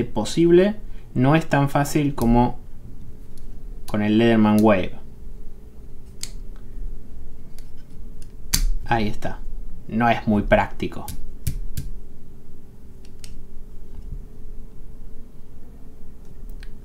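Metal tool parts click as they are folded and opened.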